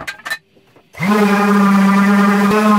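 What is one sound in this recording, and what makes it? An electric sander whirs loudly.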